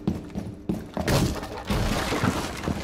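Wood crashes and splinters as a window is broken through.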